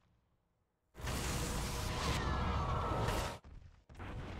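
A magic blast whooshes and crackles in a game.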